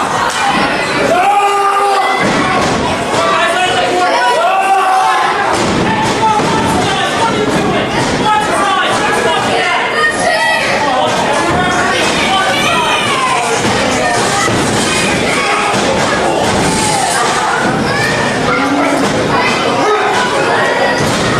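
Wrestlers thud and slam onto a ring mat.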